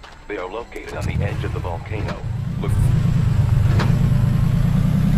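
An off-road jeep engine rumbles while driving.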